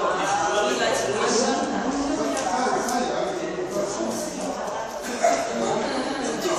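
A group of children and adults chatter at once in an echoing hall.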